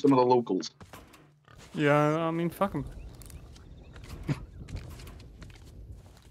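Footsteps tread on grass and rock.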